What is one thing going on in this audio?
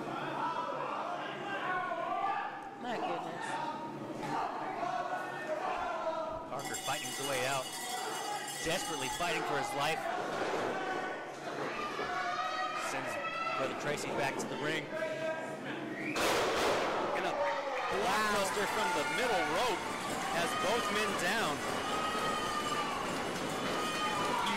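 A small crowd cheers and shouts in an echoing hall.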